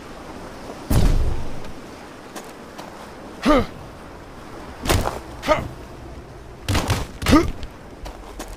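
A heavy wooden plank knocks and thuds against stone.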